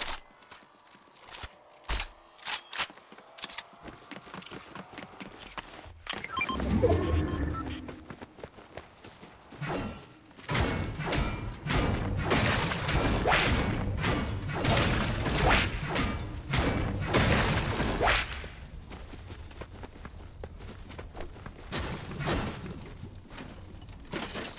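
Footsteps thud in quick succession.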